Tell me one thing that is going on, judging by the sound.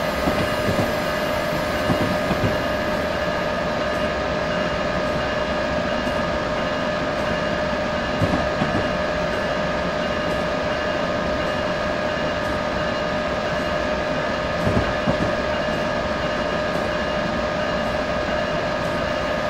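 A train's electric motors hum steadily.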